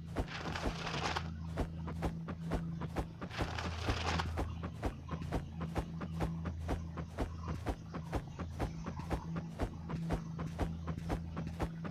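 Quick footsteps tap steadily on stone.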